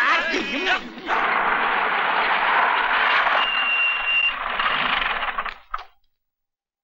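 Car tyres skid and screech on the road.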